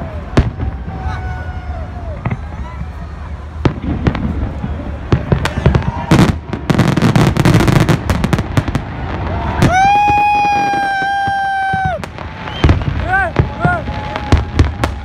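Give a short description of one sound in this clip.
Fireworks whistle as they shoot up into the sky.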